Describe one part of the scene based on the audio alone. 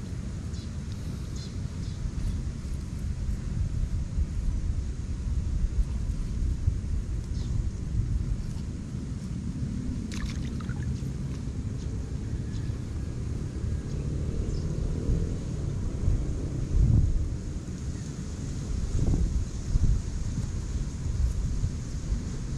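Hands press and pat damp soil around seedlings.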